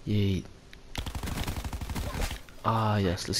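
A rapid burst of automatic gunfire rattles close by.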